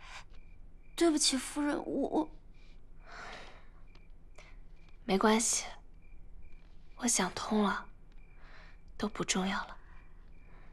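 A young woman speaks softly and calmly, close by.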